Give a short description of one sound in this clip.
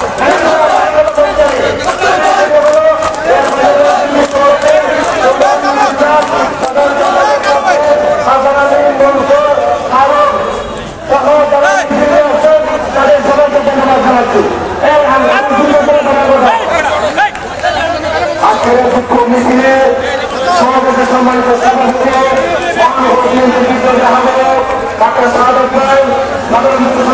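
A man shouts slogans loudly through a loudspeaker outdoors.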